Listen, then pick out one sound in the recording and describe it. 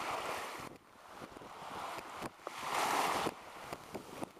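Small waves wash onto a pebble shore and draw back.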